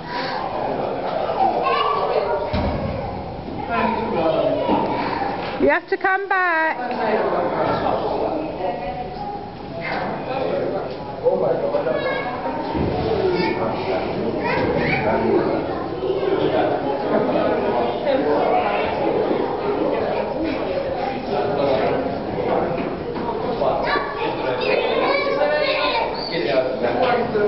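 Many children and adults chatter and call out in a large echoing hall.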